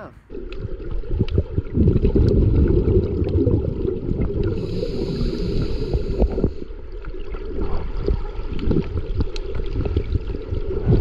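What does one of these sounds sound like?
Water surges and rumbles with a muffled, underwater sound.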